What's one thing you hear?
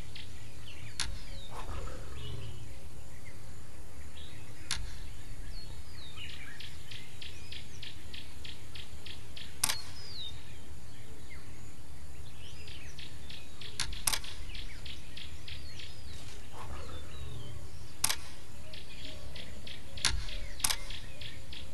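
Short interface clicks sound as game menus open and close.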